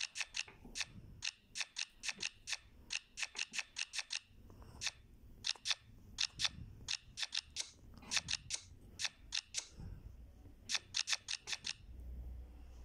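Playing cards snap into place with quick, crisp clicks.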